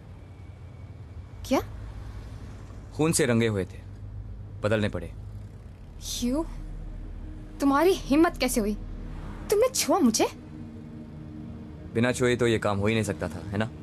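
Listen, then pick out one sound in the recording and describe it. A young woman speaks in a low, tense voice.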